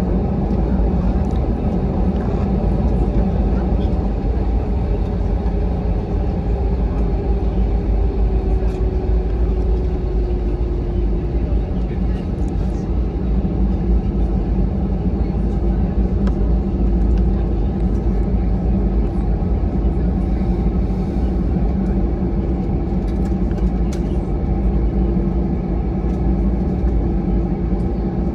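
An airliner's wheels rumble over the runway.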